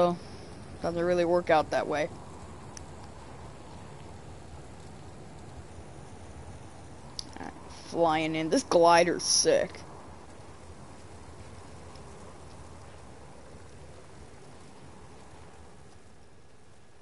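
Wind rushes steadily past a gliding figure.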